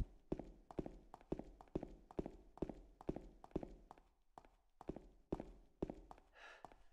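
Footsteps thud at an even pace on a hard floor.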